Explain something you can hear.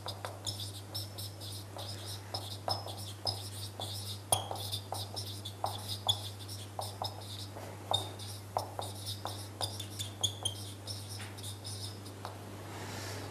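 A marker squeaks in short strokes across a whiteboard.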